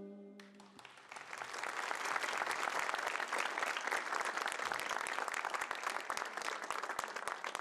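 A large audience applauds loudly and steadily.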